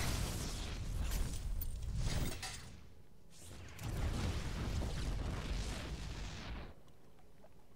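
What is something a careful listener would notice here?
Guns fire in rapid bursts with blasts of energy.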